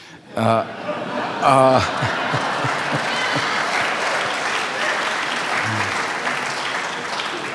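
An older man laughs heartily.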